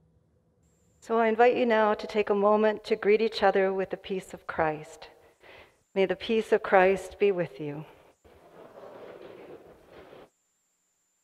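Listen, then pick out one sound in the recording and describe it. A woman sings through a microphone in an echoing room.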